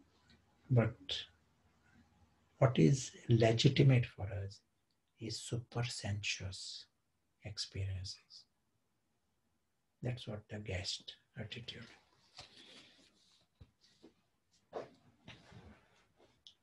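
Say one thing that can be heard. An elderly man speaks calmly into a microphone, as if on an online call.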